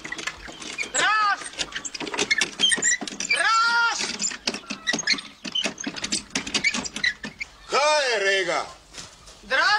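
Hens cluck and squawk close by.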